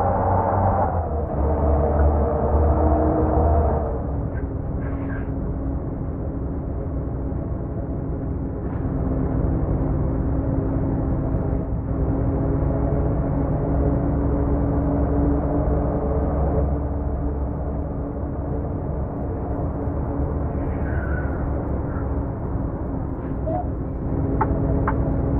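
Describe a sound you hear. A truck engine hums and drones steadily as it drives along.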